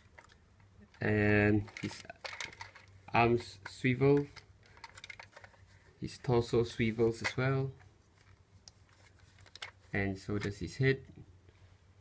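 A toy robot speaks in a high electronic voice, close by.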